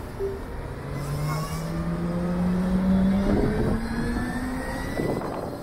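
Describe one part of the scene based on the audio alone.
A motorcycle engine hums and revs up as it pulls away.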